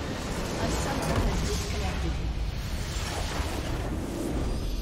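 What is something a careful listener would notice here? A base structure in a game explodes with a loud rumble.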